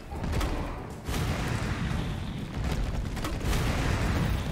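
A grenade launcher fires with heavy booms.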